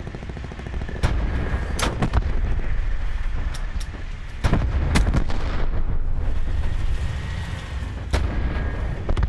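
A tank cannon fires with loud booming blasts.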